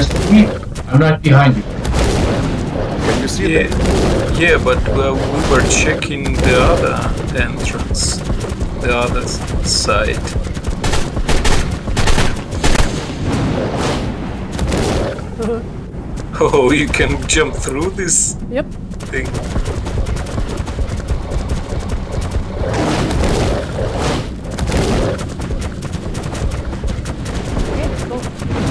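Water swirls and rumbles low while a creature swims underwater.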